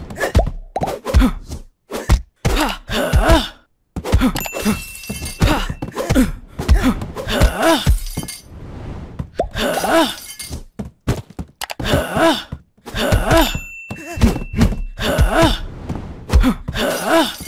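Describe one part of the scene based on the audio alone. Blows land with dull thuds in a brawl.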